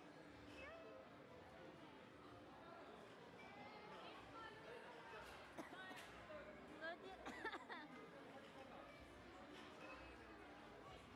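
Many voices murmur and chatter nearby.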